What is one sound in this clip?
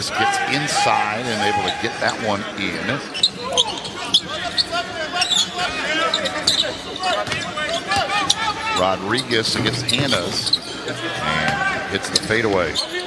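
A crowd murmurs in a large indoor arena.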